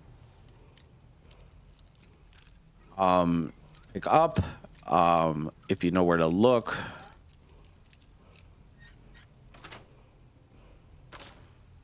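A metal lockpick clicks and scrapes inside a lock.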